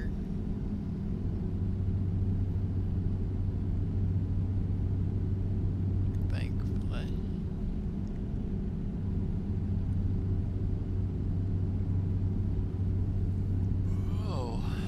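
A truck engine drones steadily at low pitch while driving.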